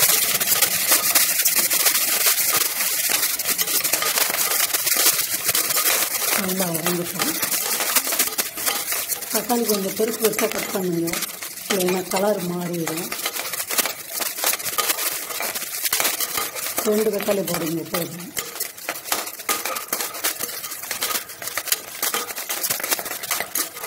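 Onions sizzle and hiss in hot oil.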